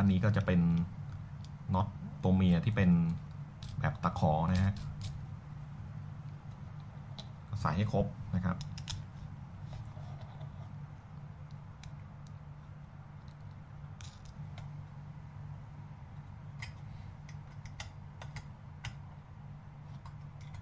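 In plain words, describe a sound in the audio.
Small metal parts click and tap as a screw is fitted and tightened by hand.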